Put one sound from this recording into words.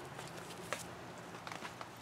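A gloved hand rustles and pokes through crumbly soil.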